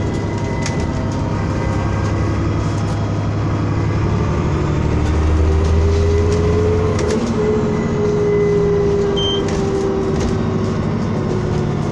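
Small rattles and clicks sound throughout the bus interior.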